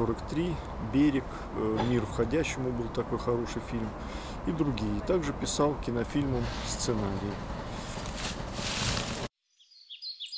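A young man speaks calmly, close to a microphone.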